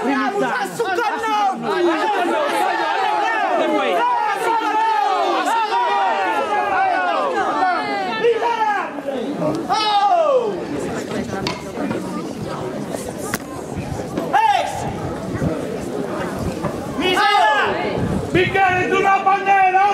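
A crowd murmurs in the open air.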